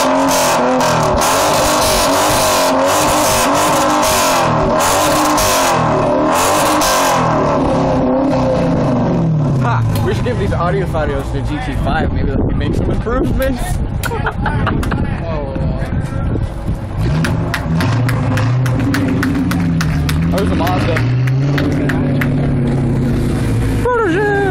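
A muscle car with a loud aftermarket exhaust revs repeatedly.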